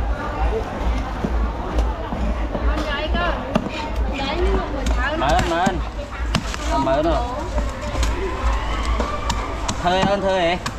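A knife blade knocks against a wooden chopping board.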